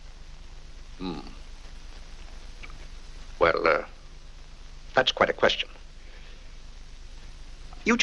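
An older man answers with animation, exclaiming.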